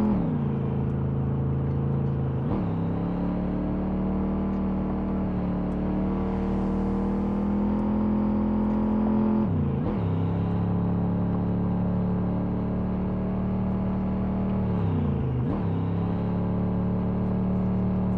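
A car engine hums steadily, dropping in pitch with each gear change and then climbing again.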